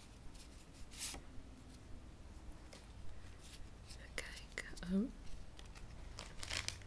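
Plastic cards rustle and click as a hand shuffles them.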